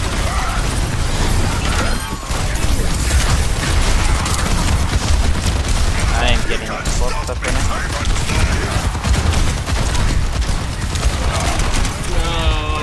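Gunfire and explosions crackle and boom without a break.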